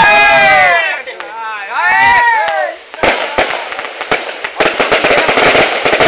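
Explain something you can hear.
Fireworks pop and crackle outdoors.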